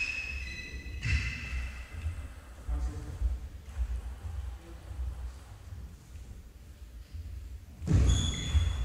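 A table tennis ball clicks back and forth on the table and paddles.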